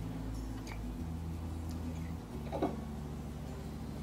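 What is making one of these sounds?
A fork scrapes against a plate.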